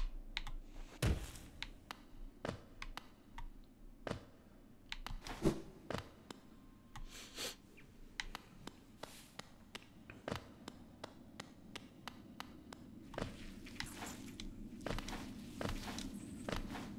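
Light footsteps patter quickly.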